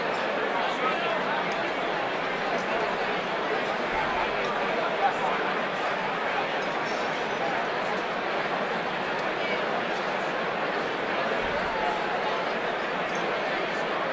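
A large crowd chatters loudly all around in a big echoing hall.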